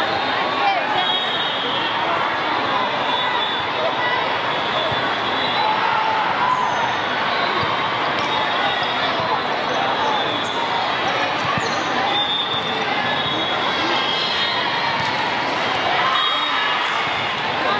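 Shoes squeak sharply on a hard court.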